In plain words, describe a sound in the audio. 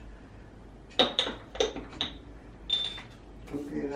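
Glass jars clink against each other.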